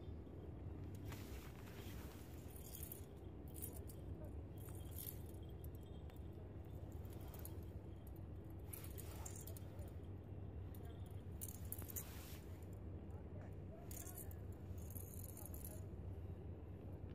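Small metal fishing tackle clinks and rattles in a man's hands.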